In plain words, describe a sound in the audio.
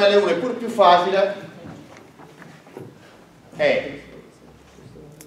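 A man speaks in a lecturing voice in an echoing room.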